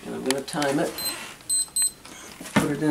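An electronic keypad beeps several times.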